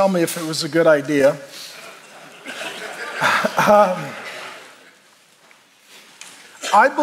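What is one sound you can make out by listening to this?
A middle-aged man speaks with animation through a microphone in a reverberant hall.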